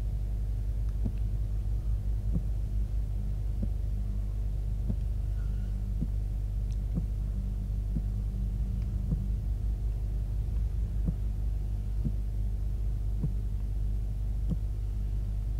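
Footsteps tap softly and evenly on a hard metal floor.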